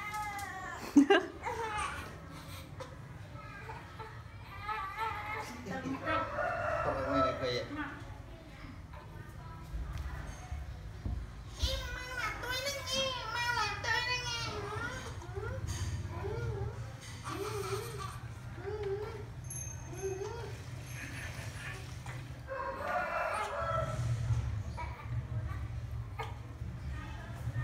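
A man talks playfully to a baby nearby.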